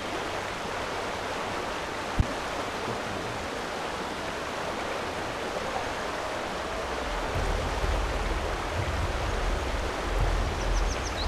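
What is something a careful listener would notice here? Water ripples and laps gently over stones outdoors.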